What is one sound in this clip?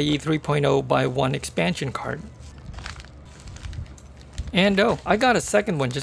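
Plastic packaging crinkles and rustles close by.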